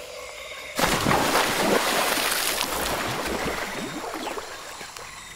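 Water sloshes and swirls with swimming strokes.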